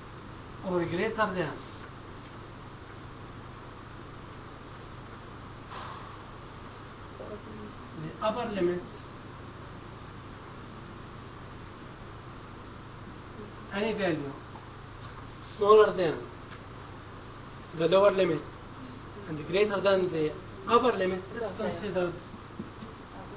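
A middle-aged man lectures through a microphone, speaking in short bursts with pauses.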